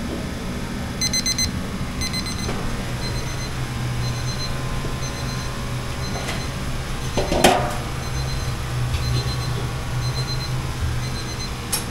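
A kitchen timer beeps in short repeated bursts.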